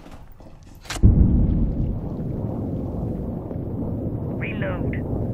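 A loud blast goes off, followed by a dull ringing rumble.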